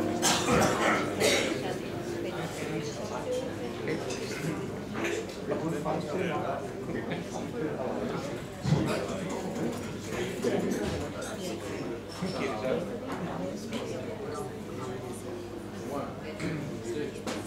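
An electric bass plays a low line.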